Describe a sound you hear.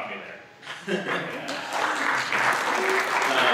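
A young man chuckles through a microphone.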